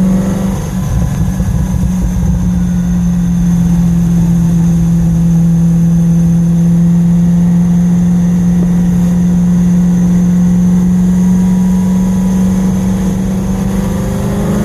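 Road noise rumbles low under the car.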